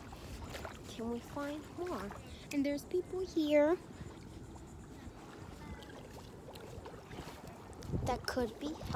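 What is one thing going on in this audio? A young girl talks close to the microphone with animation.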